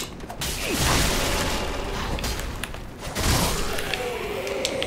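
A sword swings through the air with heavy whooshes.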